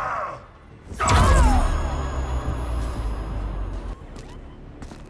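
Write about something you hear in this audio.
A magical energy blast bursts with a loud whoosh.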